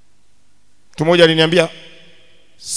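A young man speaks loudly into a microphone through loudspeakers in a large echoing hall.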